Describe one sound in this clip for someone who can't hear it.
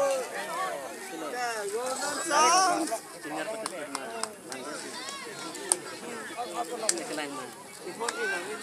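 A crowd of men and children chatters and shouts excitedly outdoors.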